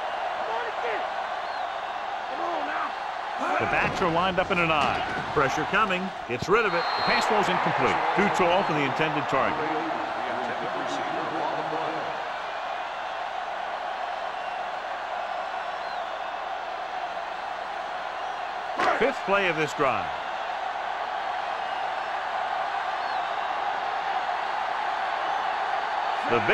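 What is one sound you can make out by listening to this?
A stadium crowd murmurs and cheers steadily.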